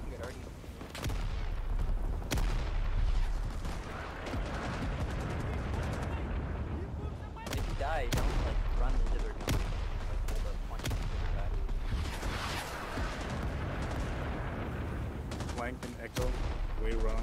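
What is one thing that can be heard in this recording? Gunshots crack sharply now and then.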